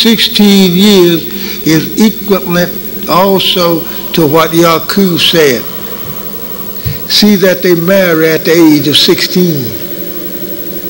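An elderly man speaks forcefully through a microphone and loudspeakers in an echoing hall.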